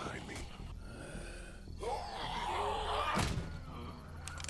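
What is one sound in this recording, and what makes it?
A zombie groans and snarls.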